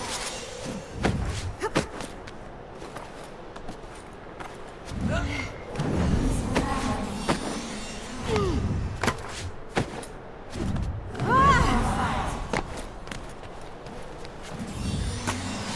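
Sharp knocks and thuds ring out now and then.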